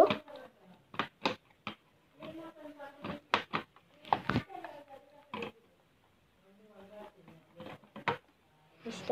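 Wall switches click on and off several times.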